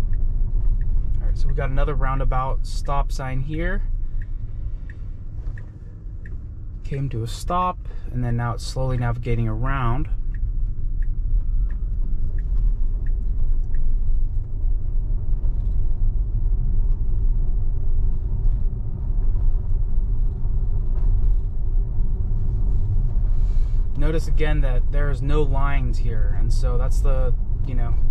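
A car hums steadily from inside as it drives along a road.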